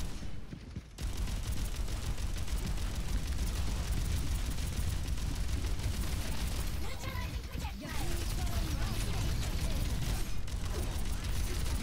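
Guns fire in rapid bursts amid loud blasts.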